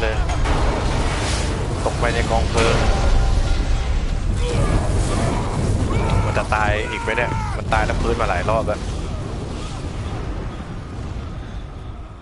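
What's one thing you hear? A huge explosion roars with a deep, rolling rumble that slowly fades.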